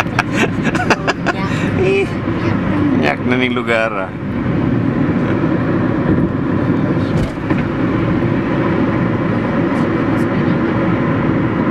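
A car engine hums and tyres roar steadily on a highway, heard from inside the car.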